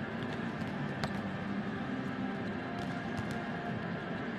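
A volleyball smacks against a player's hands.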